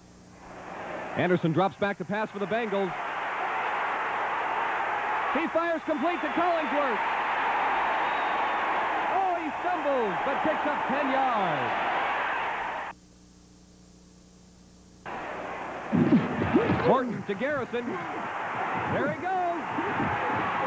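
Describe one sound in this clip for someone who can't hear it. A stadium crowd roars.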